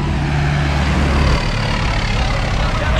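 A tractor engine rumbles loudly as it passes.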